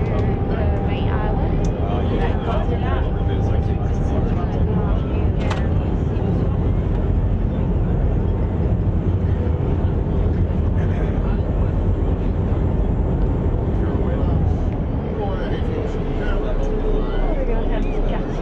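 A boat engine rumbles steadily underfoot.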